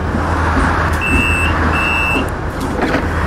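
An electronic ticket machine beeps twice.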